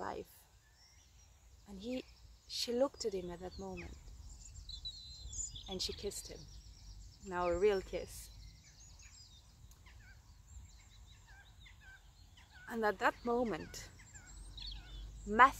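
A young woman speaks calmly and close by, in pauses.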